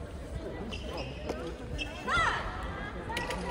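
Shoes squeak sharply on a hall floor.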